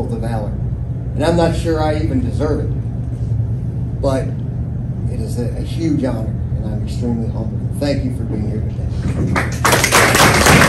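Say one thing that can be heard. An elderly woman speaks calmly.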